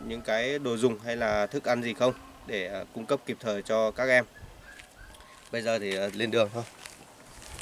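A young man talks close by, calmly and clearly.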